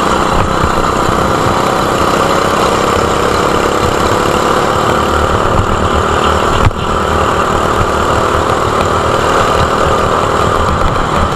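A go-kart engine buzzes loudly up close.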